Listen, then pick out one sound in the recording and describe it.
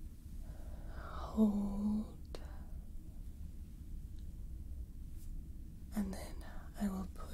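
Hands rub and brush softly close to a microphone.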